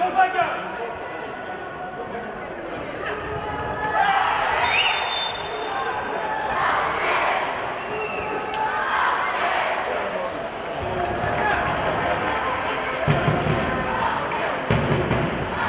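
A crowd in a large open stadium sings and shouts from the stands.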